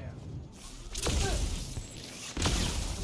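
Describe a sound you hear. Heavy punches land with loud thuds.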